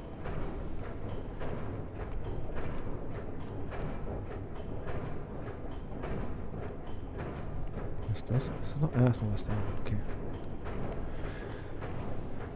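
A steam engine chugs in a steady rhythm.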